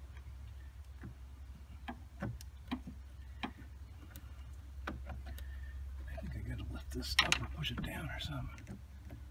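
Tools click and clatter against metal engine parts.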